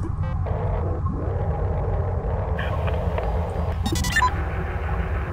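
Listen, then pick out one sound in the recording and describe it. A low electronic hum drones steadily.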